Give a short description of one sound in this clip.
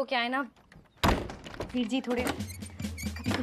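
A metal door latch rattles and clicks.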